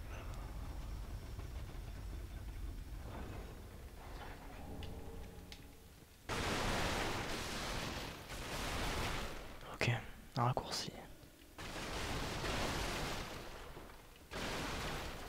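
Heavy armoured footsteps clank on a stone floor.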